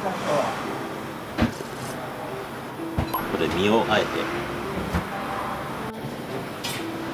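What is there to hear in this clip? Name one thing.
A man slurps noodles noisily.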